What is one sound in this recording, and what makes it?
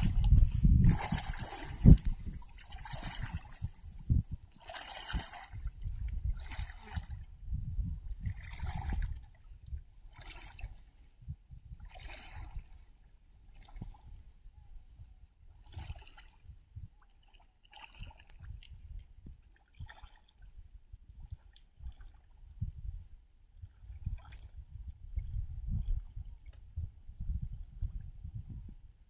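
Water sloshes and splashes as a man wades through a shallow river.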